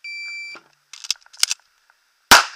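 A magazine clicks into a pistol.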